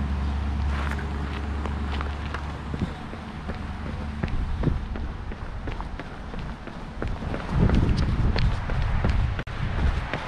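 Footsteps scuff on pavement outdoors.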